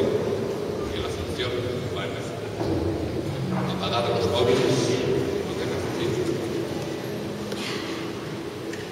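A small ensemble plays music in a large echoing hall.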